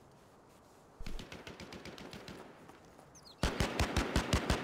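Quick footsteps run over dirt and gravel.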